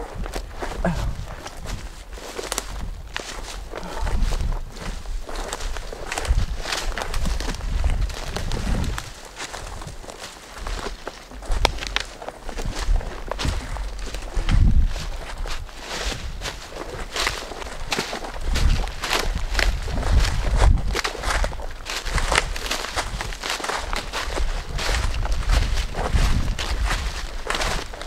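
Footsteps crunch through dry leaves and brush.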